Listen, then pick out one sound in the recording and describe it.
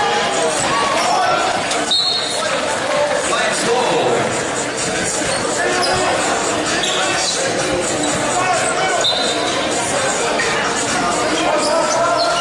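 Basketball shoes squeak sharply on a hardwood floor in a large echoing gym.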